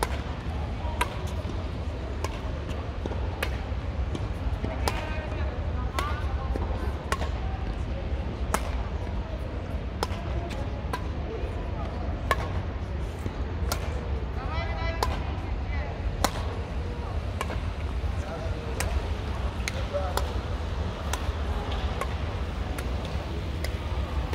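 Rackets hit a shuttlecock back and forth with sharp pops.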